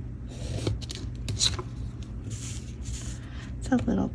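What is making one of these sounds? Paper slides across a cutting mat.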